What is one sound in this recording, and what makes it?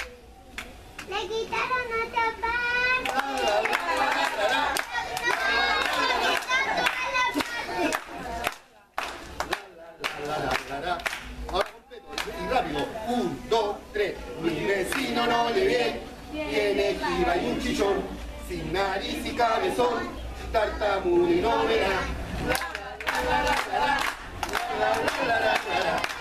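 A group of children and adults sing together outdoors.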